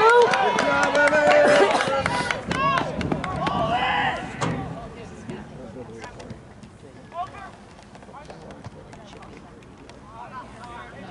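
Young men shout and call out to each other across an open outdoor field.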